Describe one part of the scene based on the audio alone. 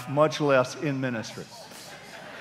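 A middle-aged man speaks with animation through a microphone in a large hall.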